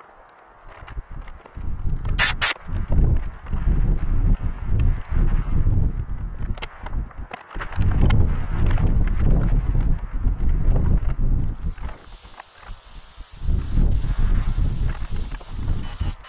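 Wind buffets the microphone outdoors in strong gusts.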